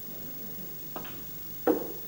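A cue strikes a snooker ball with a sharp tap.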